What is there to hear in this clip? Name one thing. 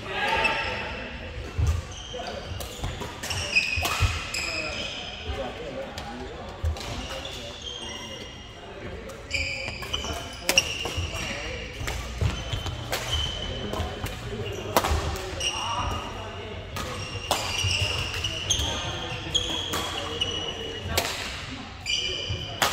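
Rackets smack shuttlecocks in a large echoing hall.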